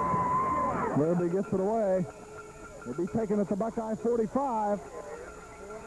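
Men close by shout excitedly.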